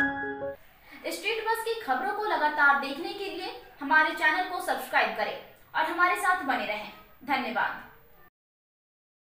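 A young woman speaks clearly and steadily into a close microphone.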